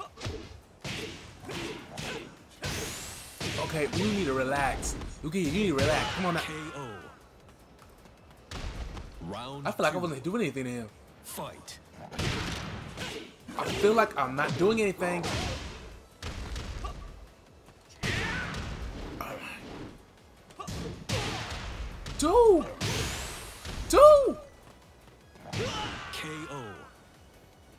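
Punches and kicks land with sharp thuds in a fighting video game.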